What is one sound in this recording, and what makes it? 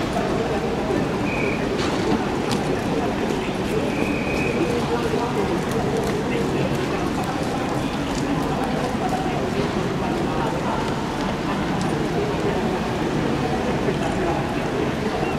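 Horse hooves clop softly on the ground.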